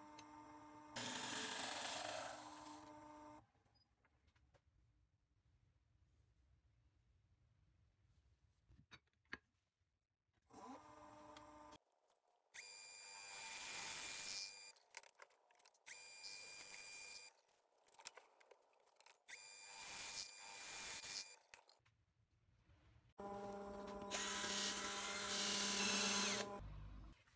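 A chisel scrapes and cuts into spinning wood.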